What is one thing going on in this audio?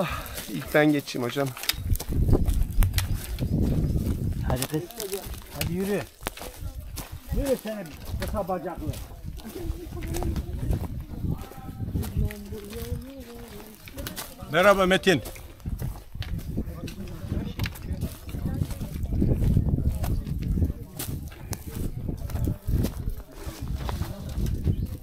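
Footsteps crunch on loose rocks.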